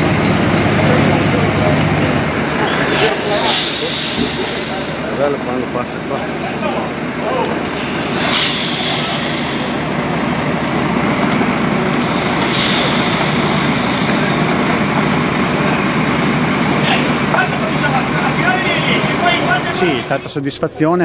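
A heavy truck engine rumbles slowly outdoors.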